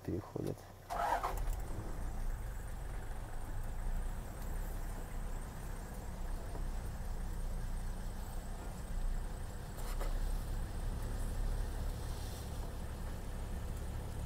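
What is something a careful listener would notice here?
A vehicle engine idles nearby.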